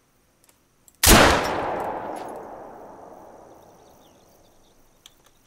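A rifle shot cracks loudly and echoes away through the forest.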